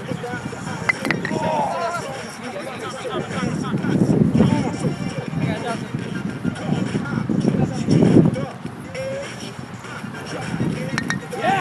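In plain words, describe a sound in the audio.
A wooden stick knocks against a wooden block on the grass.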